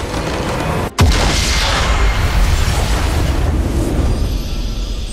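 A huge structure explodes with a deep, rumbling boom.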